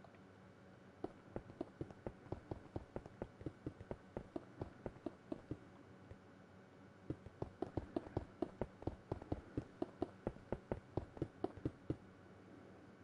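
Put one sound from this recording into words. Quick footsteps tap on stone.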